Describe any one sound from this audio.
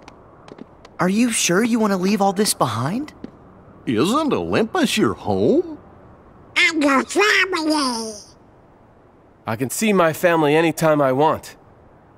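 A young man speaks calmly and questioningly through a microphone.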